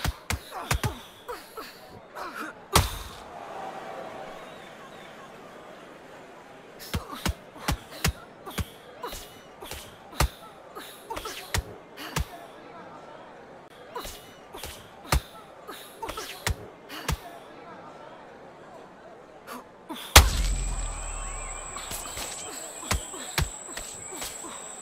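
Gloved punches thud against bodies in quick bursts.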